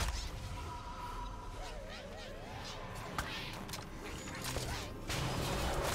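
Magic attack effects whoosh, zap and chime in quick bursts.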